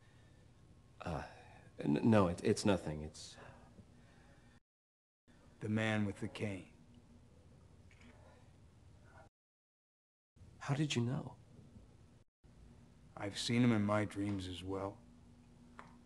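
An older man speaks calmly and slowly nearby.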